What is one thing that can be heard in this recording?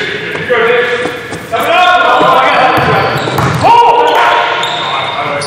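Sneakers squeak sharply on a gym floor, their sound echoing in a large hall.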